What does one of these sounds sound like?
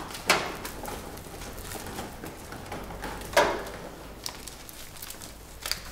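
Small wheels of a trolley roll over a tiled floor.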